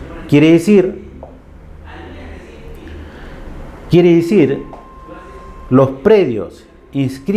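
A man speaks into a microphone in a lecturing tone, in short bursts with pauses.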